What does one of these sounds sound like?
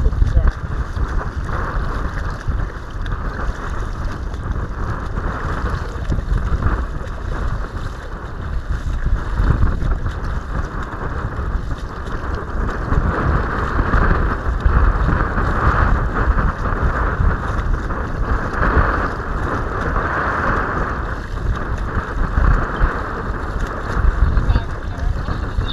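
Choppy water slaps and splashes against a kayak's bow.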